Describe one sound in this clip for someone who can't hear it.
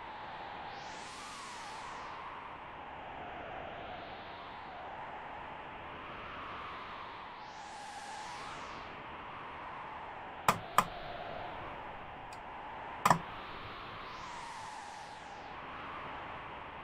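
Soft ambient game music swells and fades in slow waves.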